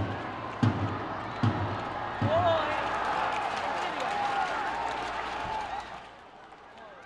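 A large stadium crowd cheers and shouts.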